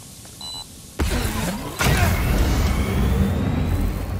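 Loud, booming music suddenly blasts from a large loudspeaker.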